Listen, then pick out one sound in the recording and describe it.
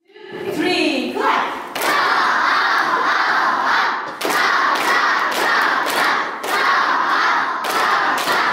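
A group of children clap their hands in rhythm.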